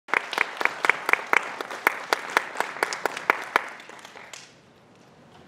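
An audience claps briskly close by, then the clapping dies away.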